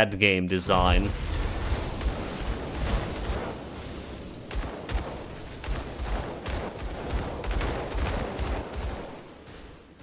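Magic spells crackle and boom in quick bursts.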